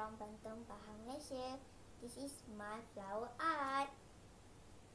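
A young girl speaks clearly and brightly close by.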